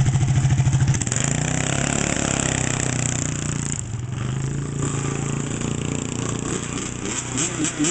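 A dirt bike engine idles and revs.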